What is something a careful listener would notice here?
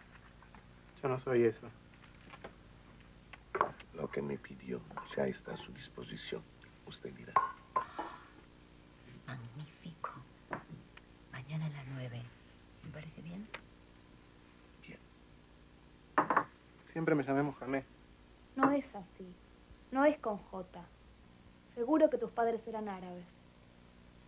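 An older man talks quietly up close.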